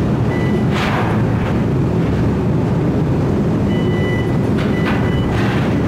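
Heavy machinery rumbles steadily on a ship's deck.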